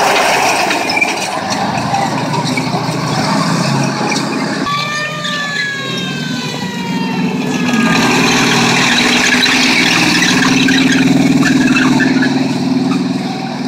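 Tank tracks clank and squeal over pavement.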